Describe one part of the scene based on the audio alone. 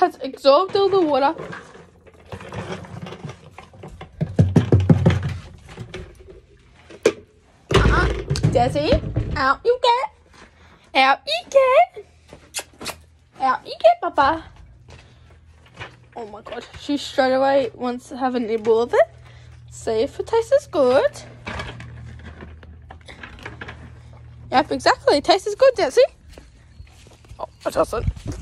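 A teenage girl talks close by, with animation.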